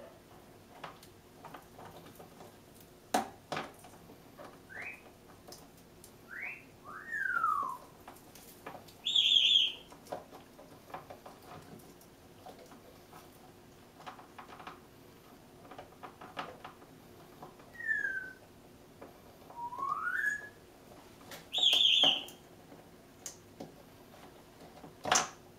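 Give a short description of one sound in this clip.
A parrot's beak taps on a plastic dish.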